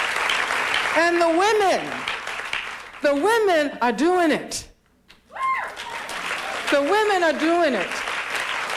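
A woman speaks with expression through a microphone in a large hall.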